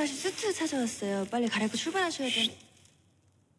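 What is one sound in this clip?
A young woman speaks with strained, shaky emotion close by.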